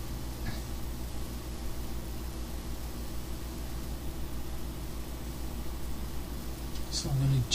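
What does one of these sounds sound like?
A small plastic device clicks softly as hands handle it.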